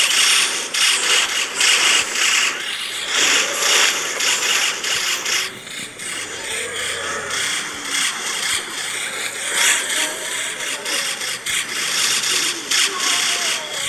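Rapid cartoon shooting sounds from a video game battle go on throughout.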